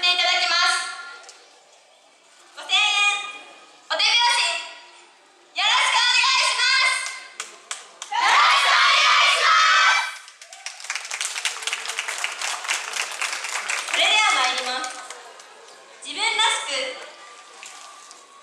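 Young women shout out loud calls in unison nearby.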